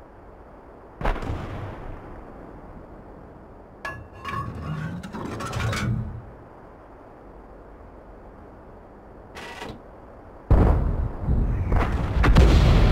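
A heavy cannon fires with a deep boom.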